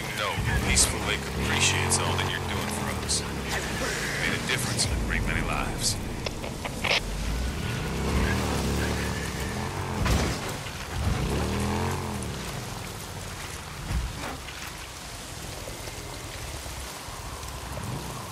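A motorcycle engine revs and rumbles as the bike rides over rough ground.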